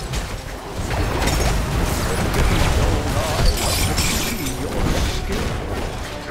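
Spells and weapons clash and burst in a busy fight.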